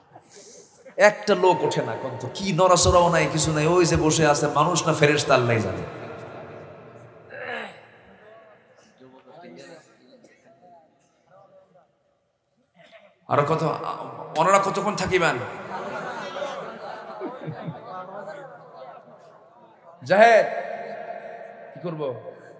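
A man preaches with passion into a microphone over loudspeakers, in bursts with pauses, in a reverberant space.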